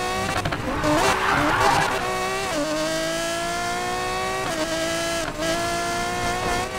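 A race car engine roars at high speed, its pitch climbing and dropping sharply with gear shifts.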